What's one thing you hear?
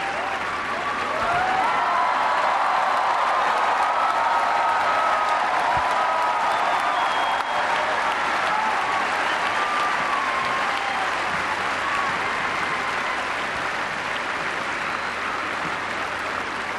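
Many people applaud steadily.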